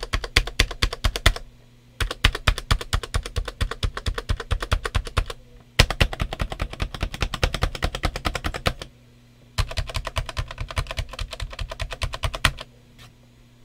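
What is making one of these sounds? Keys on a mechanical keyboard clack in fast bursts of typing.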